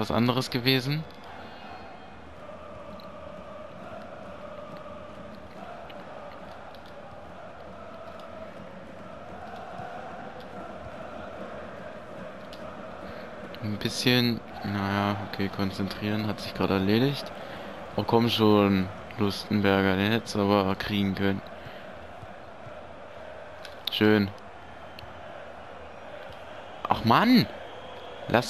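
A large stadium crowd murmurs steadily in the background.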